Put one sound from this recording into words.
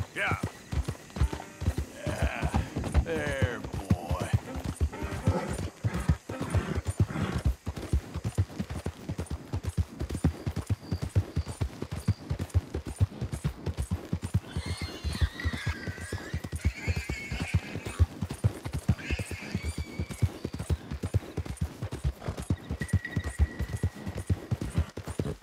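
Horse hooves thud steadily on a dirt trail.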